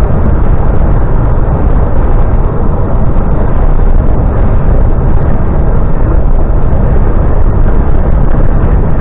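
A vehicle's engine rumbles steadily.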